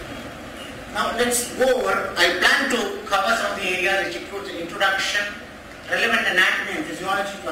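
A man speaks through a microphone in a large room, lecturing.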